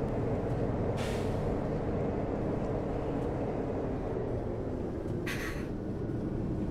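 Wipers swish across a windshield.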